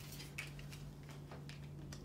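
A person's hands shuffle small objects on a table.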